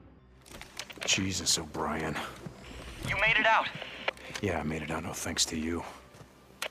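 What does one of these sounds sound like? A man speaks calmly into a radio.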